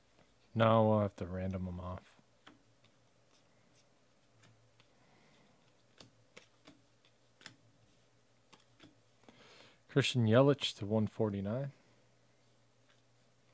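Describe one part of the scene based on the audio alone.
Trading cards flick and slide softly as they are sorted by hand.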